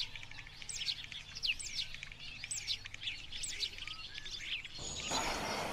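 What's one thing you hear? A jackdaw gives short, sharp calls.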